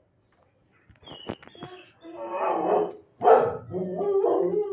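A dog shifts and rustles on a soft blanket.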